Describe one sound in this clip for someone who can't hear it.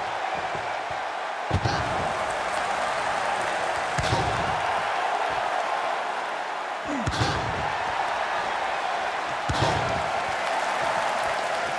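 A crowd cheers and roars steadily in a large arena.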